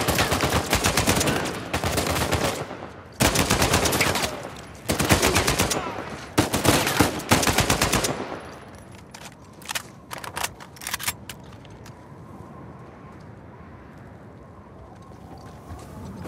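Footsteps crunch on snowy rock.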